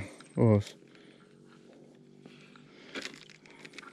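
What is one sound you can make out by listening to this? A fishing reel clicks as it is handled.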